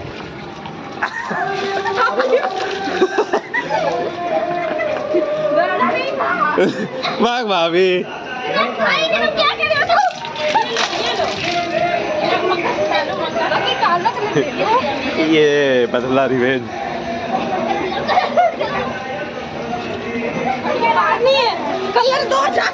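Several men and women talk and laugh loudly close by.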